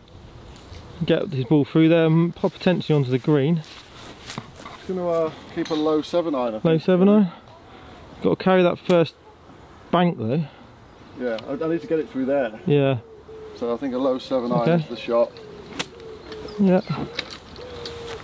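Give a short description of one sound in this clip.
A man talks calmly and clearly, close by.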